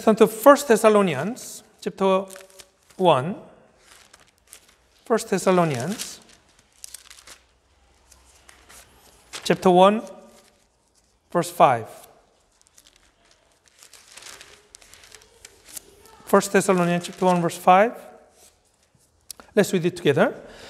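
A middle-aged man reads out calmly into a close microphone, in short phrases with pauses.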